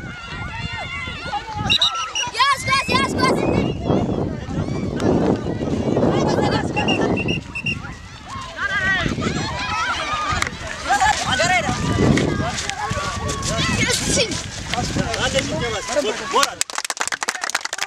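Children shout and call out outdoors.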